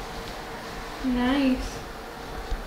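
A young woman makes a short sound with her voice close by.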